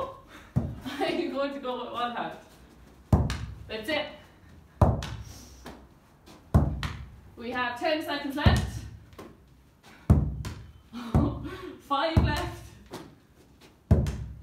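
A football thumps against a wall again and again in a small echoing room.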